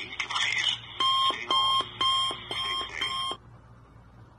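A phone beeps in short even pulses.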